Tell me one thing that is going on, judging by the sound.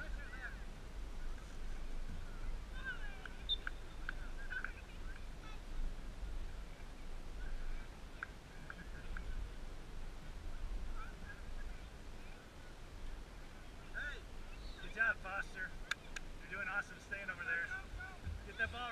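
Distant players shout across an open field.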